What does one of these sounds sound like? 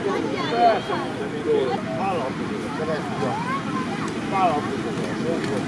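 Young children call out in high voices.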